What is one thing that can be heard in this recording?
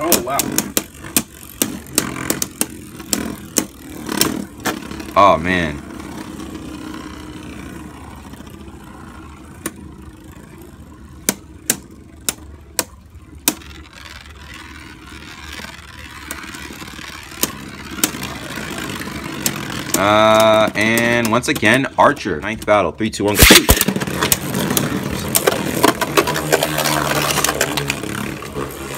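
Spinning tops whir and clack sharply against each other.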